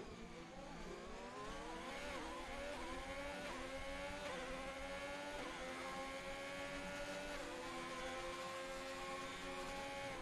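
A racing car engine screams at high revs, climbing through quick gear shifts and then holding a steady pitch.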